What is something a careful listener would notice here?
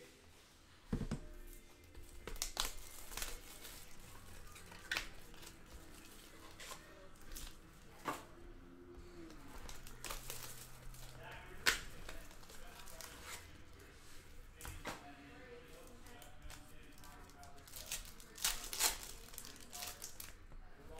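Cards click and tap as they are stacked.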